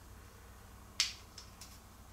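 Small metal reel parts click together in someone's hands.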